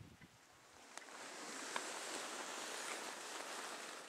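Wind blows outdoors and picks up.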